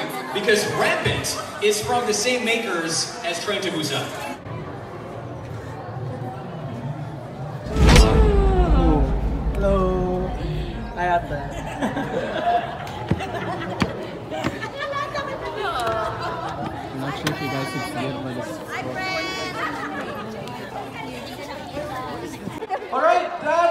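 A crowd of people chatter and call out in a large echoing room.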